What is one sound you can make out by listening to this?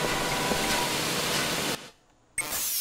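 Steam hisses from a pipe.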